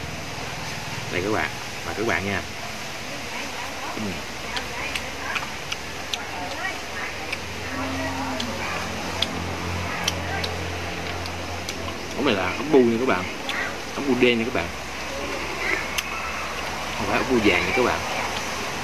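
Snail shells click and clink against each other.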